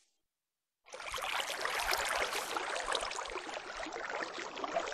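Water splashes and swirls steadily.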